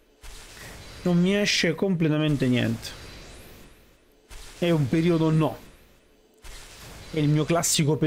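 An adult man speaks with animation into a close microphone.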